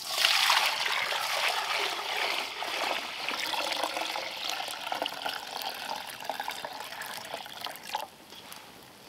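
Water pours and splashes into a metal pot.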